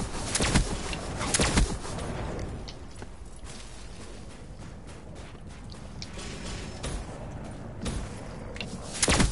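Gunfire rings out in short, loud bursts.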